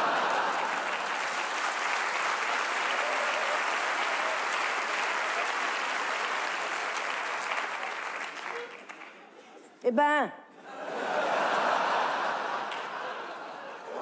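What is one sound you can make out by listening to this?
An audience laughs and applauds in a large hall.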